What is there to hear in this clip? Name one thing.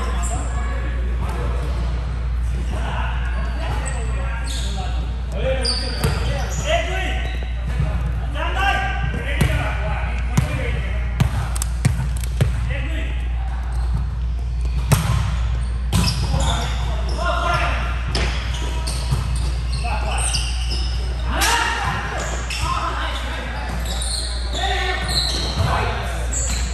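A volleyball thumps off players' hands and arms.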